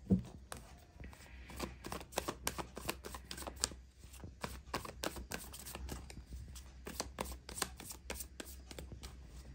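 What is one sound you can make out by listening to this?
Playing cards are shuffled by hand, flicking and clicking rapidly.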